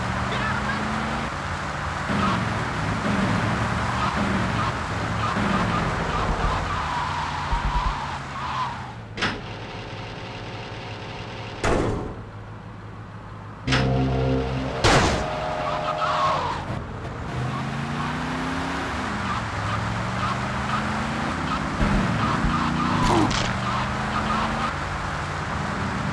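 A car engine revs up repeatedly as it accelerates through the gears.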